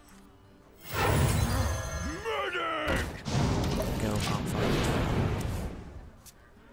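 A magical burst and whoosh ring out as a game spell strikes.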